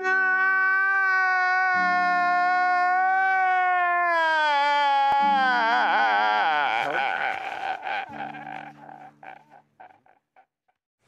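A man wails loudly in a long, falling cry.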